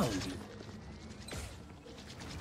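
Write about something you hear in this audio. A gun fires a single shot.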